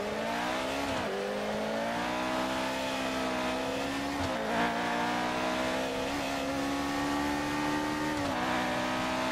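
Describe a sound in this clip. Gears shift with sharp clicks as the engine revs rise.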